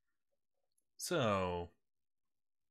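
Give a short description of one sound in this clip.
A video game villager character makes a short, low grunting hum.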